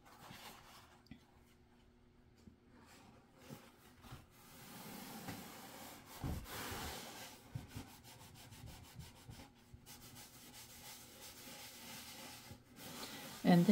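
Paper towel rustles and crinkles as hands press it onto a board.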